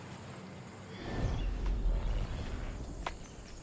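A heavy thump and rush of air sound as a figure lands on the ground.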